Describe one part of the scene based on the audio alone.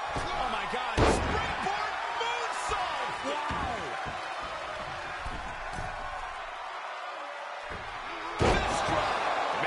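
Heavy bodies slam onto a wrestling mat with loud thuds.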